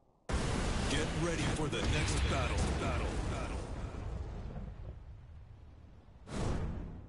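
A fiery burst roars and slowly dies away.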